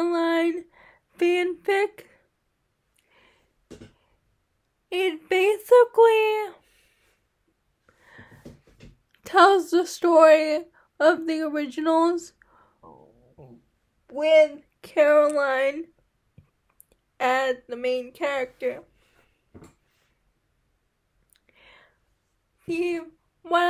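A girl talks with animation close to a microphone, in short bursts with pauses.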